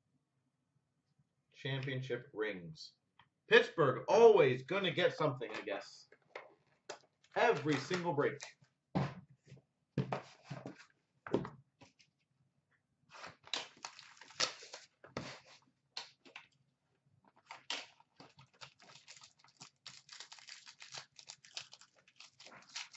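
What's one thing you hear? Card packs tap and rustle as they are handled close by.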